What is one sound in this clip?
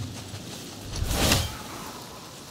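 An axe swishes through the air.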